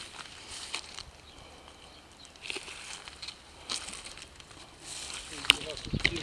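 Leaves and twigs rustle and snap close by.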